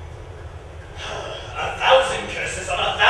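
A man speaks out loudly on a stage in a large hall.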